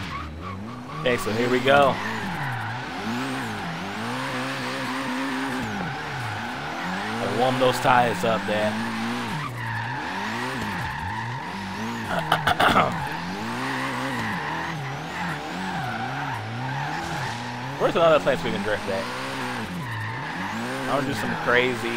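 Tyres squeal steadily while drifting.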